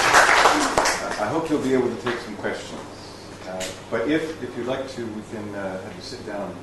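A middle-aged man talks in conversation.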